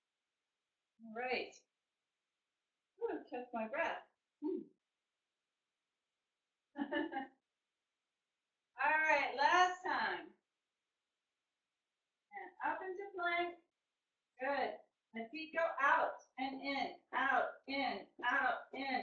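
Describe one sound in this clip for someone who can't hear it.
A woman speaks calmly and close by, pausing between phrases.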